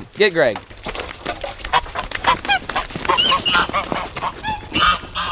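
Geese honk loudly and repeatedly.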